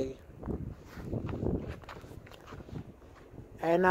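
Footsteps crunch in snow.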